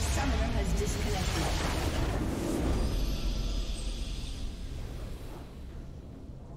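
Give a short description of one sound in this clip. A loud burst of game spell effects and explosions crashes and fades.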